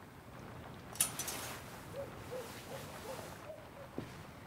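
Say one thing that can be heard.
Clothes hangers rattle and fabric rustles.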